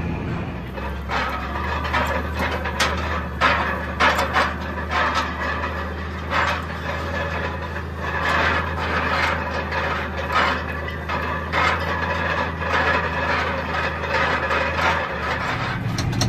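A metal roller rattles and clanks over rough ground.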